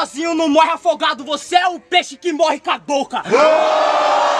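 A young man raps loudly and aggressively up close.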